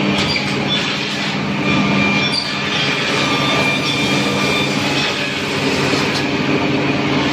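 A woodworking machine hums and whirs steadily and loudly.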